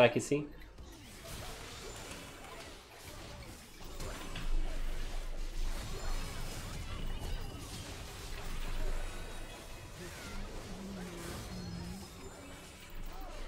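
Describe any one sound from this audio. Video game spell effects whoosh and clash.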